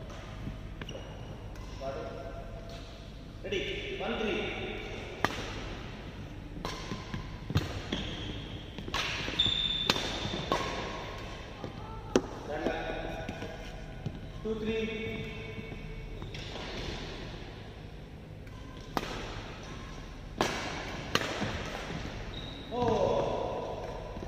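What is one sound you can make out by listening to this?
Badminton rackets smack a shuttlecock back and forth in a rally.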